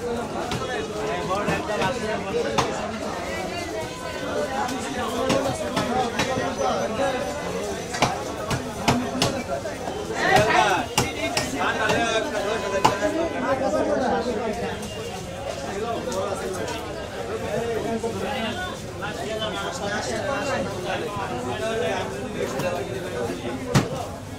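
A crowd of men and women chatter all around at close range.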